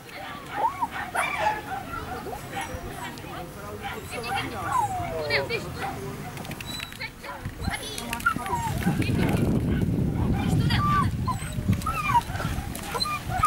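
A young woman calls out to a dog with animation, outdoors.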